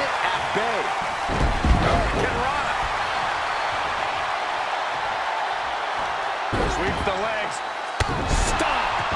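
A body slams onto a ring mat with a heavy thud.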